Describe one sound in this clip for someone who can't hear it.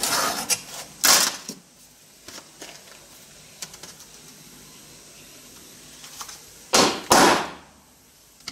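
A hammer clanks against metal.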